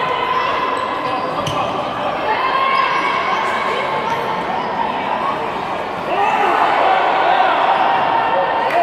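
Sneakers squeak on an indoor court.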